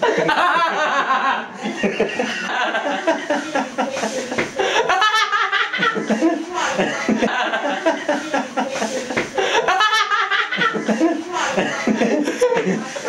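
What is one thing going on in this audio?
A man laughs loudly and heartily close by.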